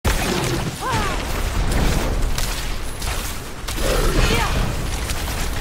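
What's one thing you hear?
A monster shrieks and growls.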